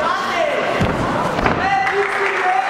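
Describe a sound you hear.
Two fighters slam down onto a canvas mat.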